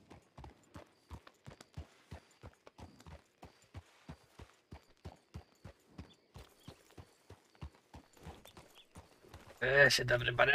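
A horse's hooves clop steadily on a dirt road.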